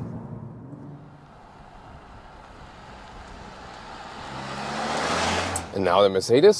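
A car engine hums as a car drives closer.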